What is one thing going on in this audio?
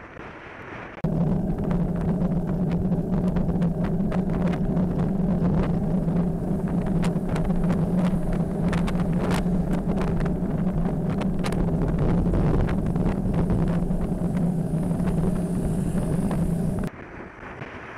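Tyres hiss on a wet road.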